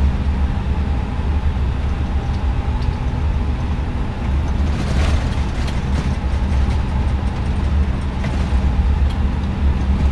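Jet engines hum with a steady low drone.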